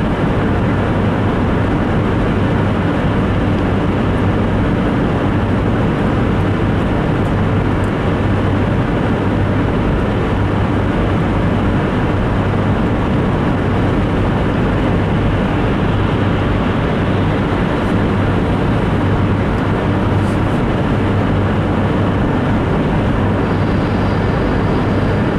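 Tyres roar steadily on wet pavement.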